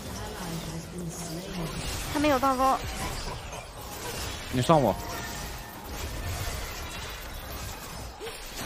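Game spell and combat sound effects clash and whoosh.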